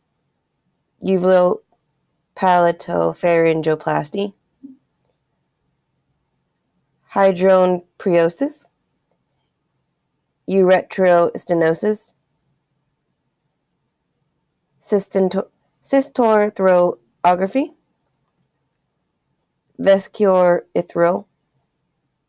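A young woman speaks calmly and close to a microphone, in short phrases with pauses.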